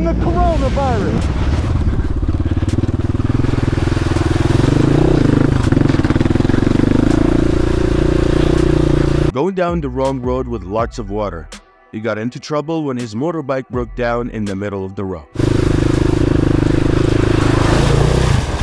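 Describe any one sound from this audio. A dirt bike engine roars and revs up and down.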